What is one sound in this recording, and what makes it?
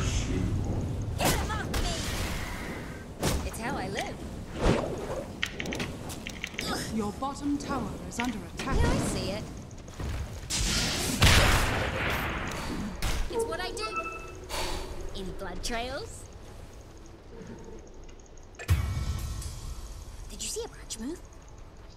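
Video game spell effects whoosh and crackle in bursts.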